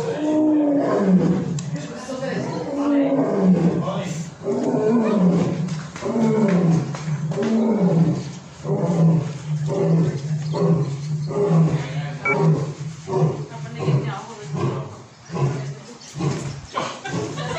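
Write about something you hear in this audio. A lion roars loudly in a series of deep grunting calls.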